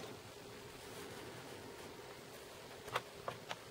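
A folding knife is set down on a padded surface with a soft knock.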